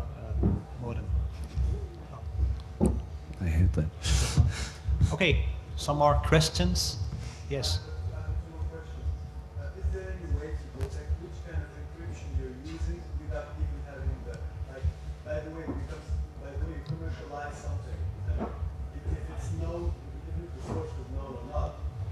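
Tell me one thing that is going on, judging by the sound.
A man speaks calmly into a microphone, heard through loudspeakers.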